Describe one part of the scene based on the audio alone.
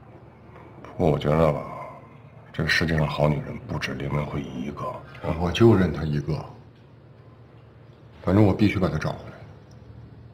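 A middle-aged man speaks in a low, serious voice close by.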